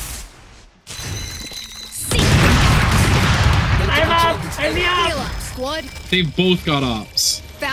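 A magical whoosh bursts out as a glowing orb is thrown.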